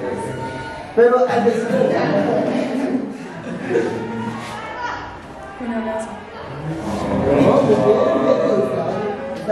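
A group of teenagers laughs together.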